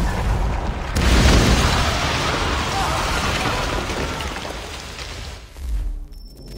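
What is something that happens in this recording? An explosion bursts with a loud boom and crackling sparks.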